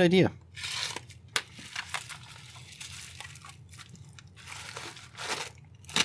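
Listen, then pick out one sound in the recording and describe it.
A padded envelope crinkles as it is handled.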